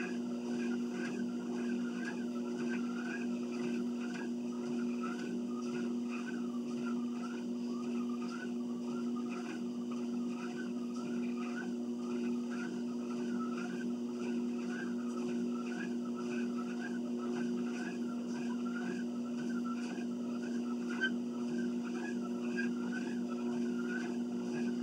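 Footsteps thud in an even walking rhythm on a treadmill belt.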